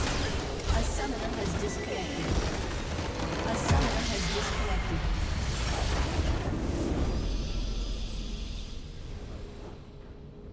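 Video game battle sound effects clash and crackle with spell blasts.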